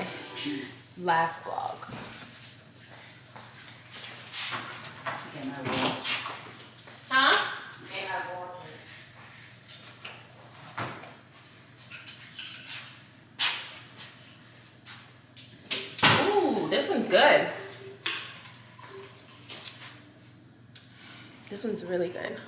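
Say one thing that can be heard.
A young woman talks casually nearby.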